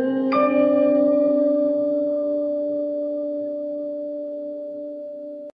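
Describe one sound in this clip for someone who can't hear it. A choir sings a long held note.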